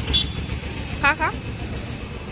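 A young woman speaks briefly nearby.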